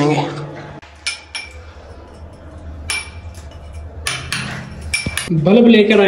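A hammer taps a chisel into a wall.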